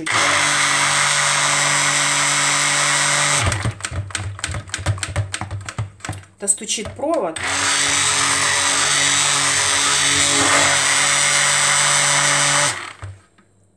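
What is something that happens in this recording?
A hand blender whirs loudly in liquid, stopping and starting in short bursts.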